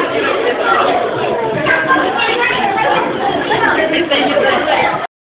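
Young children chatter and call out in a crowd.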